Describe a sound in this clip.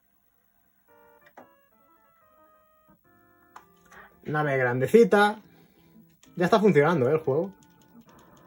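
A video game plays a soft electronic beeping tune.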